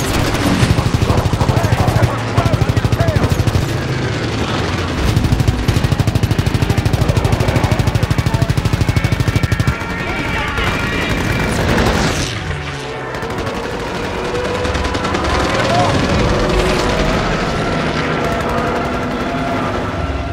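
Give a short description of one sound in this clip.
Flak shells burst with dull booms.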